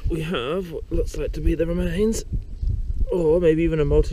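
A hand dabbles in shallow water.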